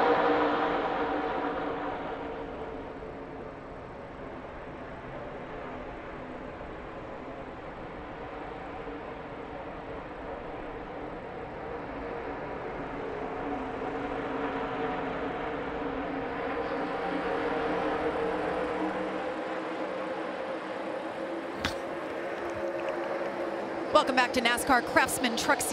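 Racing truck engines roar steadily as a pack speeds past.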